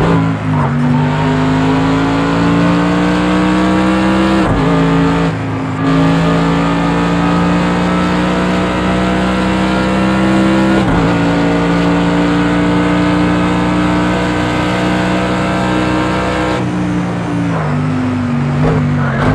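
A racing car engine roars loudly from inside the cabin, rising in pitch and dropping sharply at each gear change.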